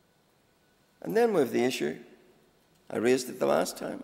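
An elderly man speaks formally into a microphone.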